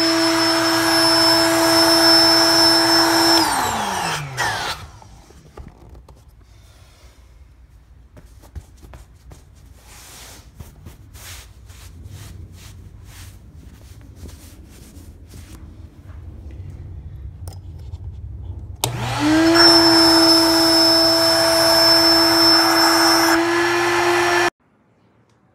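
An electric air pump hums loudly and steadily, then winds down and stops.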